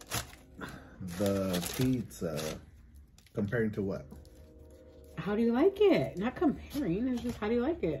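Paper wrappers rustle.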